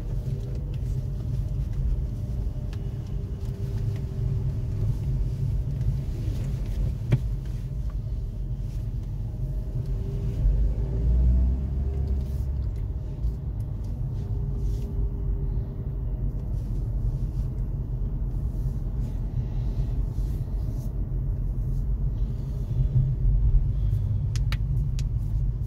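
A car engine hums low from inside the cabin as the car rolls at low speed.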